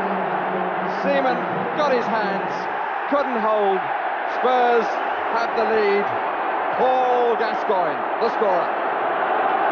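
A stadium crowd chants and sings loudly.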